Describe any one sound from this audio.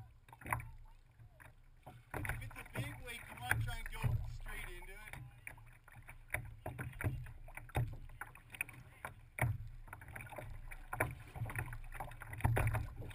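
Water splashes and laps against a kayak's hull.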